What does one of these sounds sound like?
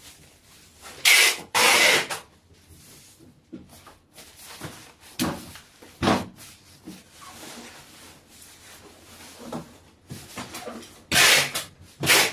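Tissue paper rustles and crinkles as it is folded.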